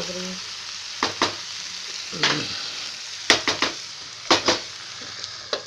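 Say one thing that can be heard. A spatula scrapes and knocks against a metal pan.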